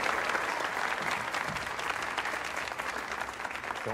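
A piano plays.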